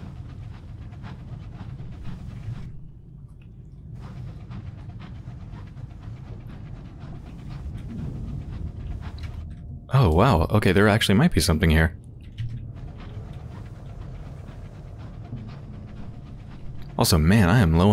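A submarine engine hums low and steady.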